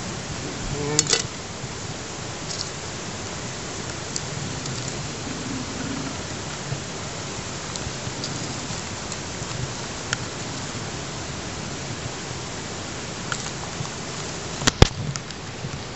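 A spoon clinks and scrapes against a metal bowl.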